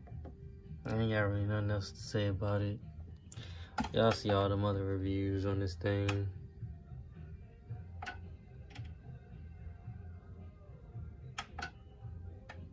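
A plastic button clicks a few times.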